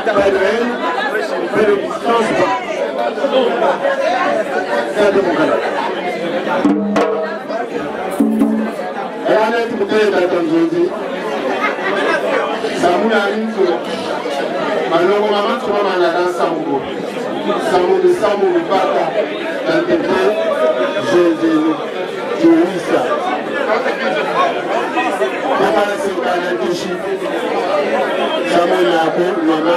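A man speaks into a microphone with animation, heard over a loudspeaker.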